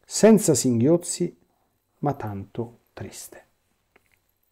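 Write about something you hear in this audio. A middle-aged man speaks calmly and close to a microphone, with short pauses.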